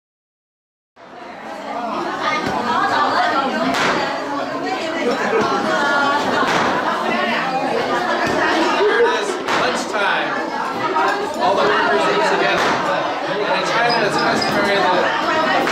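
A crowd of people chatter loudly in an echoing room.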